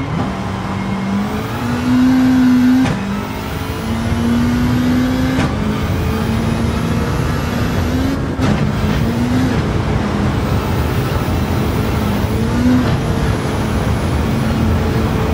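A racing car engine roars, climbing in pitch and dropping back with each gear change.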